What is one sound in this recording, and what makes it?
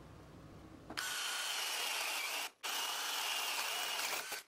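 An electric drill whirs, drilling into wood.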